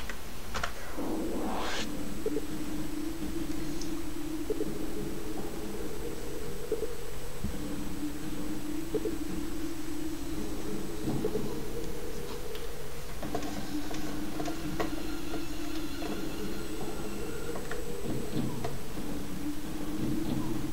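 Low droning game music plays.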